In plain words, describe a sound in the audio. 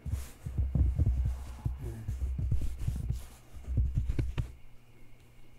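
Hands rub and pat softly on paper pages close up.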